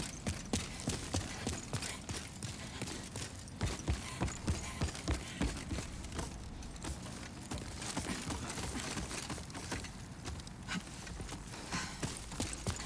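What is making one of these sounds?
Armoured footsteps thud and clank quickly on stone and wooden floors.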